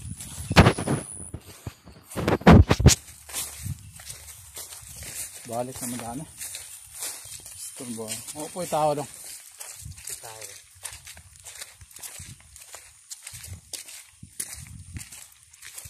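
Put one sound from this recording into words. Footsteps crunch on a path strewn with dry leaves.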